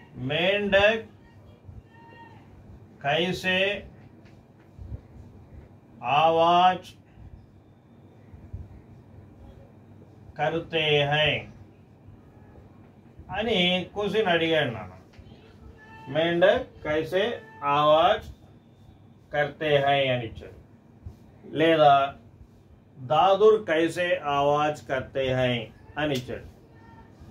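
A middle-aged man speaks calmly and clearly close by, in short phrases with pauses.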